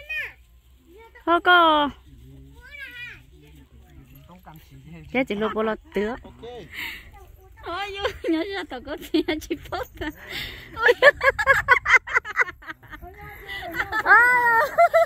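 Young women chat and laugh close by, outdoors.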